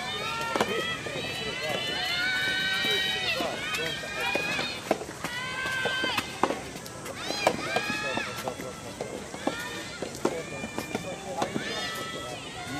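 Tennis balls are struck sharply with rackets, back and forth.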